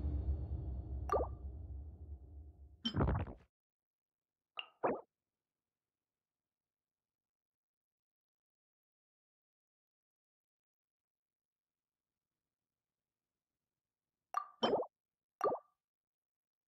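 Soft electronic menu chimes and whooshes sound a few times.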